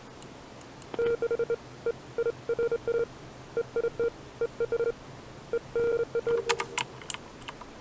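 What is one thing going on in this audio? Short electronic tones beep in quick bursts.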